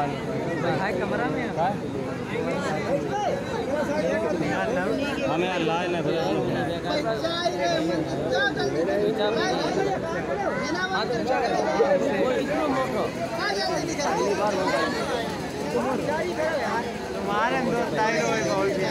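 A crowd of men, women and children chatters nearby throughout.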